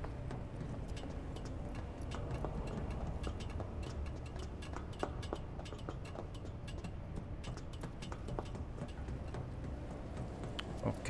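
Footsteps clang on metal rungs and grating.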